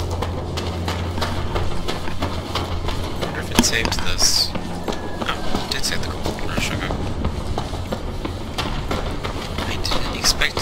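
Footsteps crunch on cobblestones at a steady pace.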